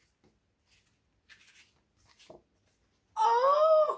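Book pages rustle as a woman turns them.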